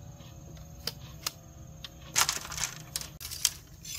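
Bamboo poles clatter as they are dropped on the ground.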